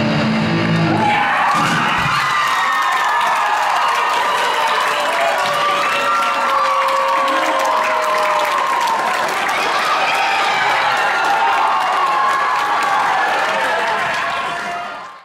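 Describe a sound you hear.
A large crowd cheers and screams loudly in an echoing hall.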